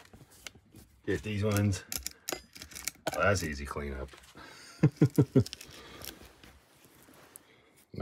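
Metal parts click and rattle as a small clamp is handled.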